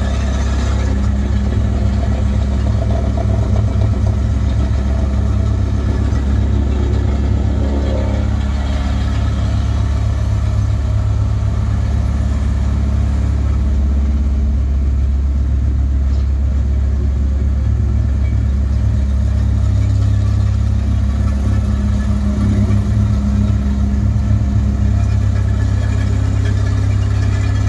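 A diesel engine rumbles steadily from inside an excavator cab.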